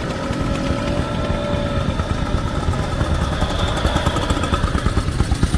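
Motor scooters ride past on a road.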